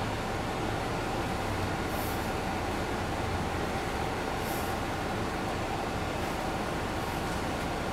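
A bus engine hums steadily from inside the cabin.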